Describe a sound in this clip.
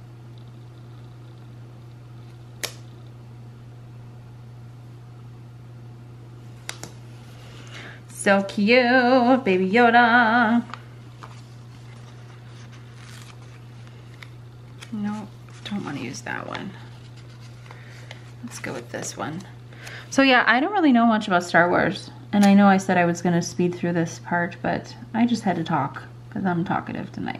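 Paper rustles softly as a sticker is pressed onto a page.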